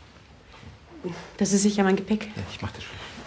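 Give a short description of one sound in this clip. A woman speaks with emotion nearby.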